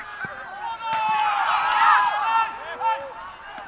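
A group of spectators cheers loudly.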